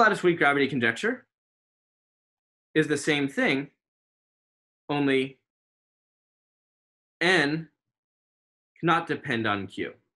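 A man speaks calmly through an online call, in short phrases with pauses between them.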